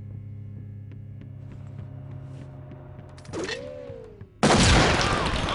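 A rifle fires a loud burst of gunshots.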